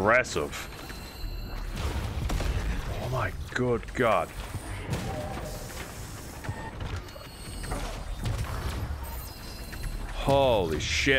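Laser blasts zap and whine.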